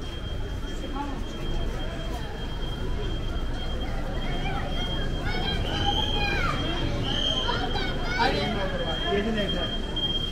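Footsteps shuffle on pavement.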